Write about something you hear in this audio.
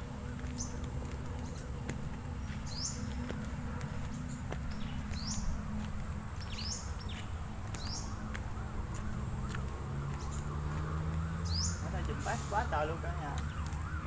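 Footsteps crunch on soft dirt.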